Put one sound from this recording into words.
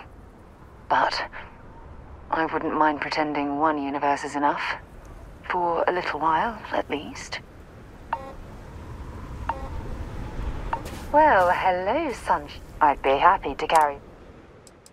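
A young woman speaks calmly and warmly, close up.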